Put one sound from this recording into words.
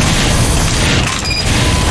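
A rotary machine gun fires in a rapid, roaring burst.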